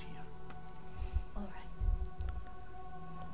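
A young woman answers briefly and softly.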